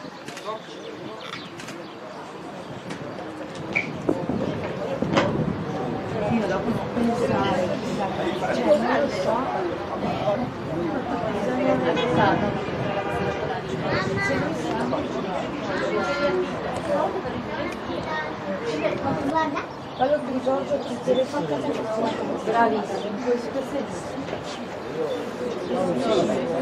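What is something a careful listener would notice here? Children shout and chatter outdoors.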